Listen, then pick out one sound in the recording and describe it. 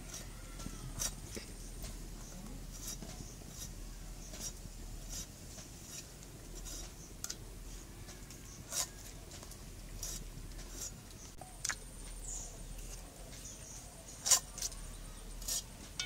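A blade chops through firm stalks with sharp knocks.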